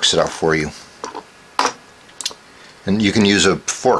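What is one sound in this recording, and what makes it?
A metal hand tool is set down on a table with a light knock.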